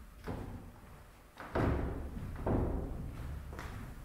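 Footsteps thud across a wooden stage.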